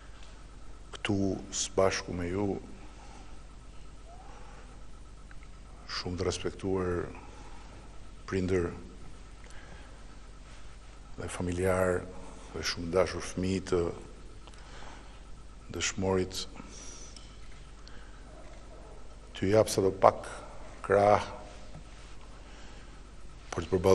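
A middle-aged man speaks slowly into a microphone, with long pauses.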